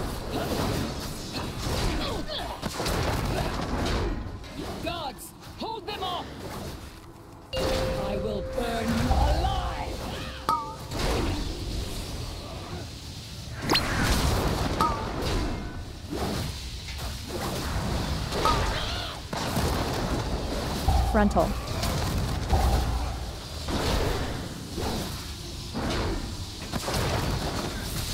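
Spell blasts and magical impacts crackle and boom in quick succession.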